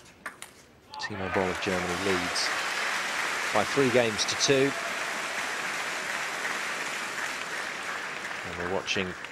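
A large crowd applauds and cheers in an echoing hall.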